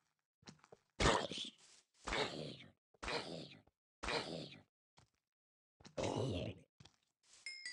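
A villager grunts and mumbles nearby.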